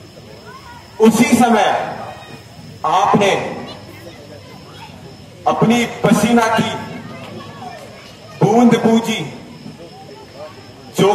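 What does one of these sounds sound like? A man declaims loudly and dramatically through a loudspeaker, in bursts with echo.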